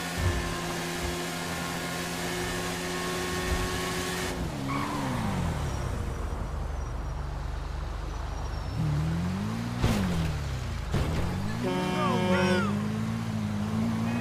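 A motorcycle engine roars and its pitch rises and falls as it speeds up and slows down.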